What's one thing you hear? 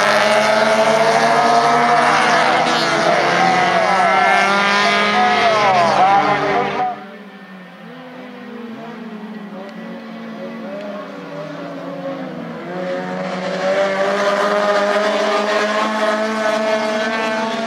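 Several small race car engines roar and rev loudly, rising and falling in pitch.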